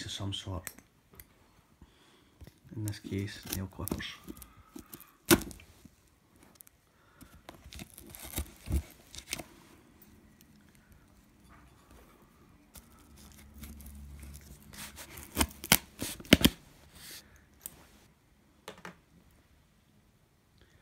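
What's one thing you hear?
Cardboard rustles and scrapes as it is handled close by.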